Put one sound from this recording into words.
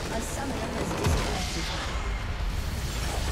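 A large structure explodes with a deep, rumbling boom.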